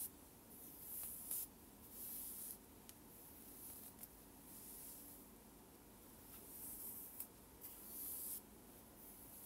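Hair rustles as hands brush through it close by.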